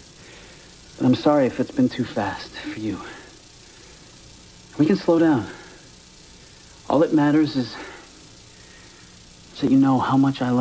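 A woman speaks close by in a low, tense voice, in short bursts with pauses.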